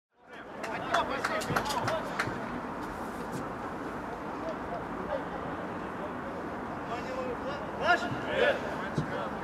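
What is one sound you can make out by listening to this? Men call out and chatter outdoors.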